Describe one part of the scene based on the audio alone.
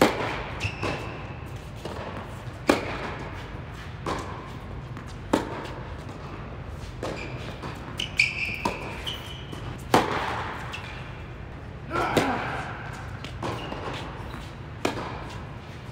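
Tennis balls are struck with rackets, popping sharply in a large echoing hall.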